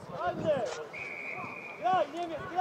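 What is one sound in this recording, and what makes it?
A referee's whistle blows a short steady blast.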